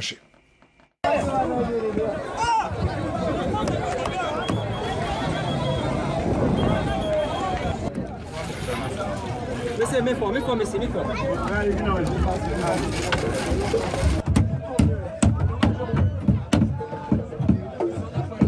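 A crowd of people chatters and shouts outdoors.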